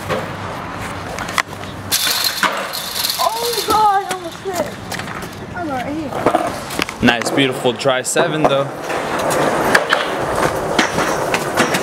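Skateboard wheels roll on concrete.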